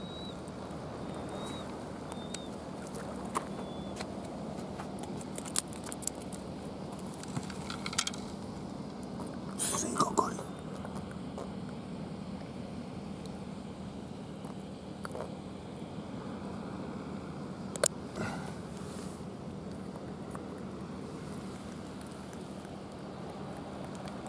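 Sea water laps against a concrete pier.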